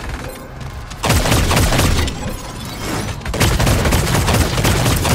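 Guns fire in rapid bursts of loud shots.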